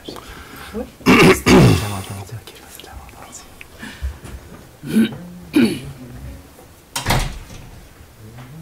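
A man speaks briefly through a microphone in an echoing room.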